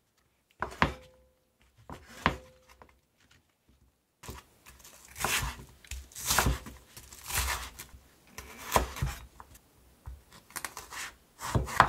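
A knife chops through vegetables and taps on a wooden board.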